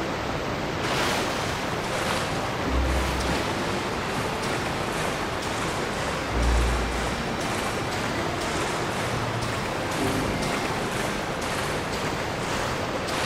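Water splashes as a swimmer strokes through it.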